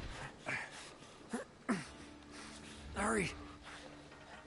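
A man grunts with effort while climbing.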